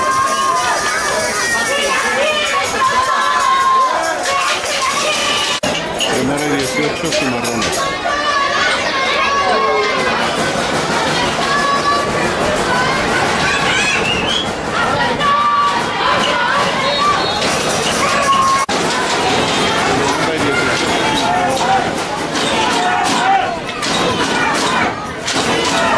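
Several men shout and call out close by on a sideline outdoors.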